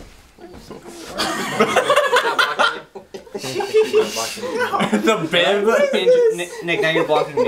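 Men and women laugh and chatter loudly.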